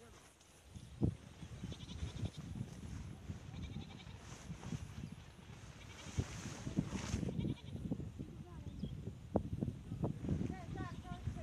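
Water sloshes and splashes as a net is dragged through a flooded ditch.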